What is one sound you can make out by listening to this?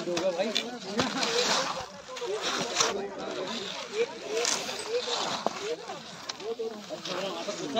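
Skis scrape on icy snow.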